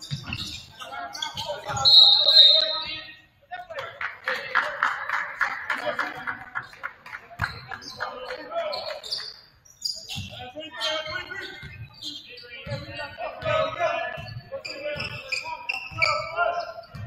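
Sneakers squeak sharply on a court floor.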